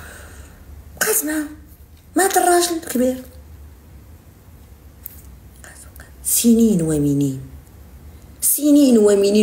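A young woman speaks close to a microphone with animation, in short bursts.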